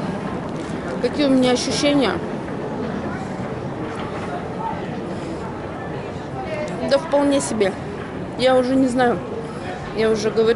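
A middle-aged woman talks close by, in bursts.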